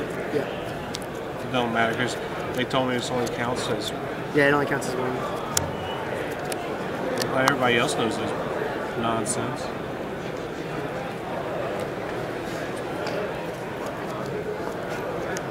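Playing cards slide and tap softly on a mat.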